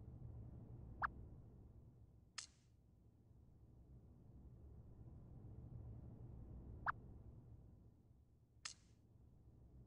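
Short electronic blips and clicks sound now and then.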